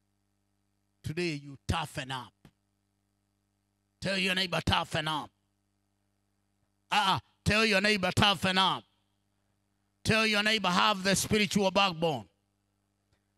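A man speaks forcefully into a microphone over a loudspeaker, in bursts with pauses.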